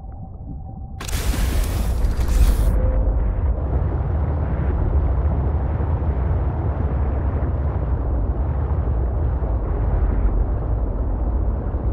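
A small submarine's engine hums low and steady under water.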